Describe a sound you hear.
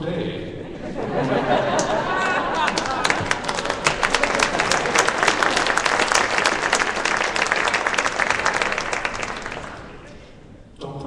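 A crowd claps and cheers loudly in a large echoing hall.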